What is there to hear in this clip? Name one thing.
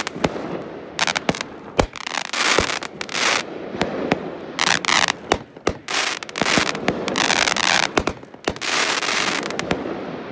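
Fireworks crackle and sizzle as they burst.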